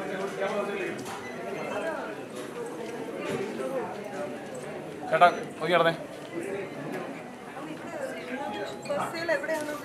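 Several people talk at once nearby.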